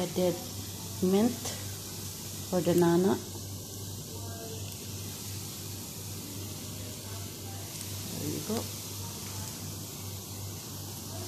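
A metal spoon scrapes and stirs food in a pan.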